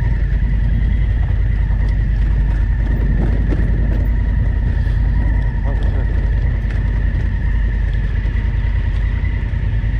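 Tyres crunch over a rough gravel track.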